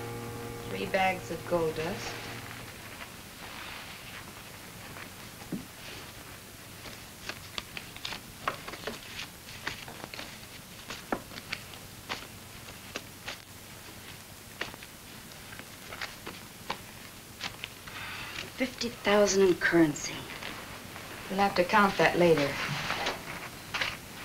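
A woman speaks clearly nearby.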